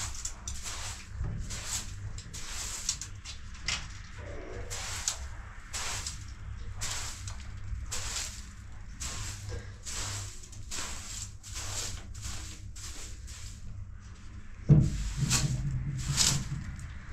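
A straw broom sweeps across a floor in repeated brisk strokes.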